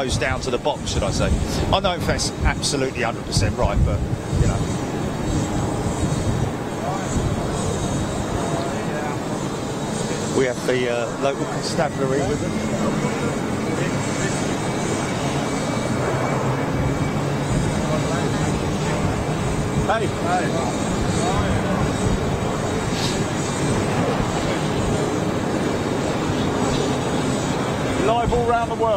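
Jet engines of a taxiing airliner hum and whine steadily outdoors.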